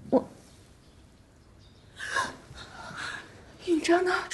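A woman speaks weakly and faintly, close by.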